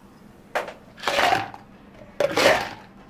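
Ice cubes clatter and rattle into a plastic cup.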